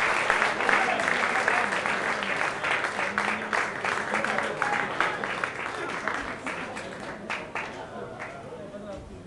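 A band plays loud electric guitar music live in a room.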